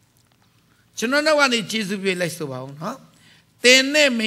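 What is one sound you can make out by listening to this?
A middle-aged man speaks loudly and with emphasis through a microphone.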